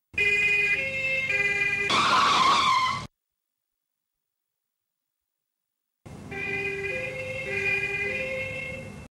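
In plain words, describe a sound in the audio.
A two-tone siren wails, stopping and starting again.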